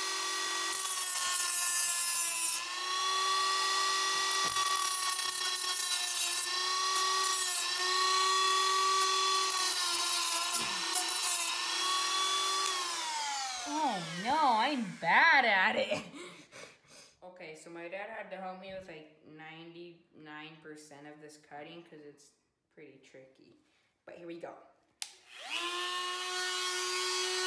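A small rotary tool whines at high speed, winds down, then starts up again.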